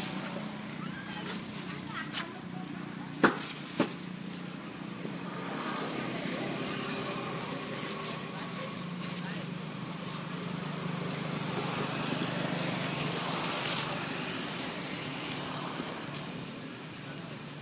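Dry leaves rustle as monkeys move over the forest floor.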